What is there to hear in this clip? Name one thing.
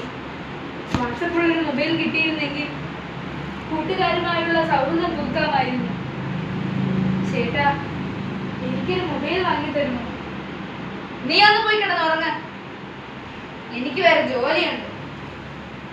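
A young woman speaks close by with animation.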